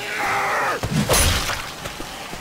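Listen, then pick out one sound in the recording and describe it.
A heavy blow thuds into a body with a wet smack.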